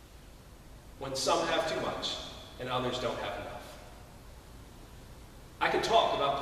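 A man speaks calmly into a microphone in a reverberant hall, with pauses.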